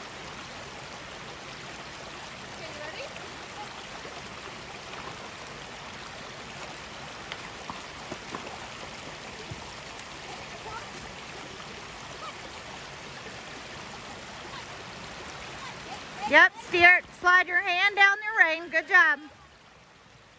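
A shallow stream trickles and babbles steadily.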